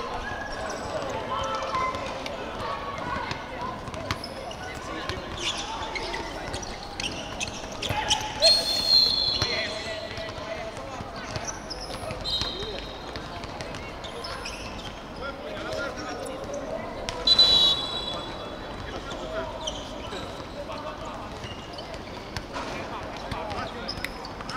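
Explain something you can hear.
Young people call out to each other across an outdoor court.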